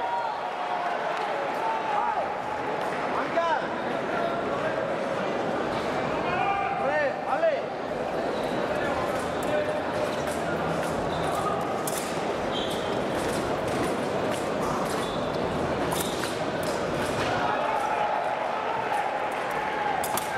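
A large crowd murmurs steadily in a big echoing hall.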